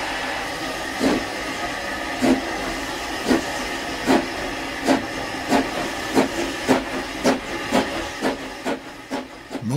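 A steam locomotive puffs with a steady, quickening beat.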